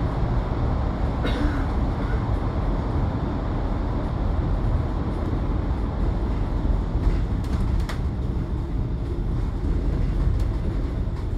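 A bus engine rumbles steadily as it drives along.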